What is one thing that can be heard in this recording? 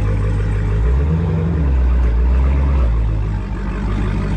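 A car engine revs briefly.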